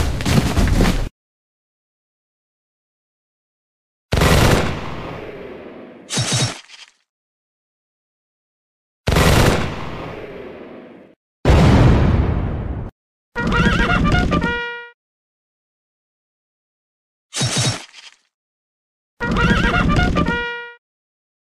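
Cannon shots boom in bursts, each fading away.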